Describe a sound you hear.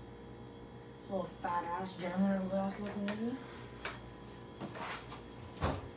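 A girl pours liquid into a glass.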